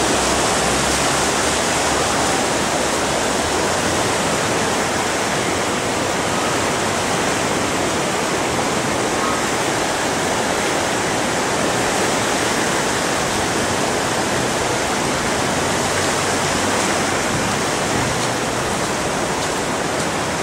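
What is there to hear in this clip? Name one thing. Floodwater rushes and roars loudly.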